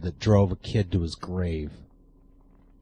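A middle-aged man speaks briefly and calmly, close to a microphone.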